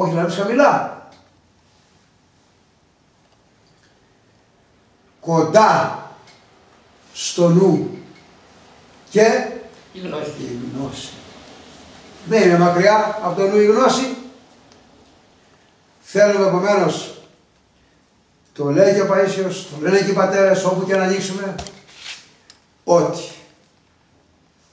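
A man speaks calmly and earnestly, close by, in short phrases with pauses.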